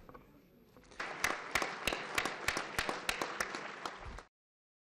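A large crowd applauds in a large echoing hall.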